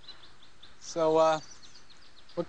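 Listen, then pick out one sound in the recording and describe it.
A young man speaks up calmly nearby.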